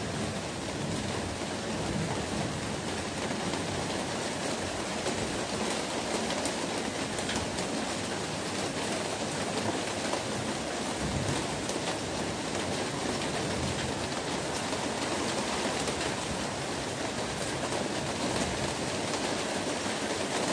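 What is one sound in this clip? Rain patters steadily on a plastic roof outdoors.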